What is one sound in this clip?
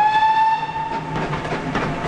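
A steam train whistle blows once, short and loud.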